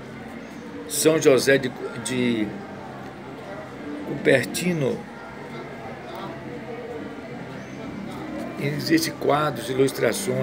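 An elderly man speaks calmly close to a phone microphone.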